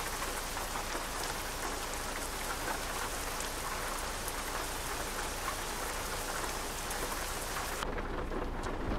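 Rain falls steadily outdoors with a hissing rush.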